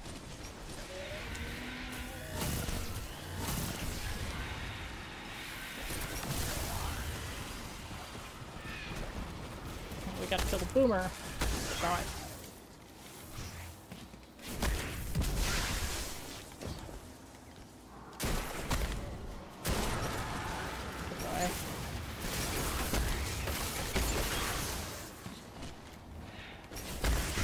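Game gunfire and blasts crack repeatedly.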